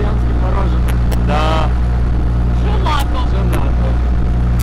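A man talks cheerfully and close by.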